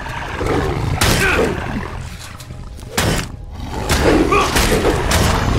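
A sword strikes a creature with sharp hits.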